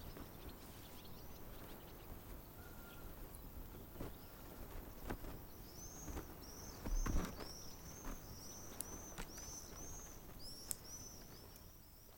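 Laundry on a line flaps in the wind.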